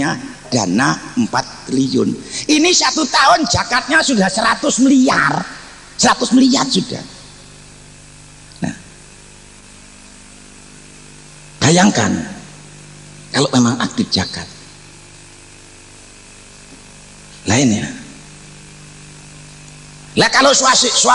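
An elderly man preaches with passion into a microphone, his voice echoing through loudspeakers.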